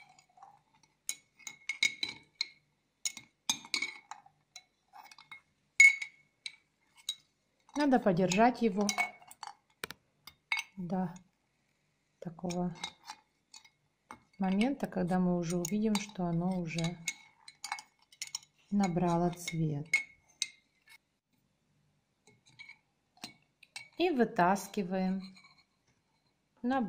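A metal spoon clinks against a glass jar.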